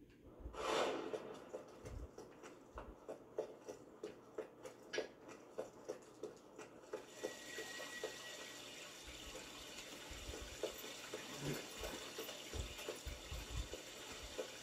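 Quick footsteps tap on a hard floor, heard through a television's speakers.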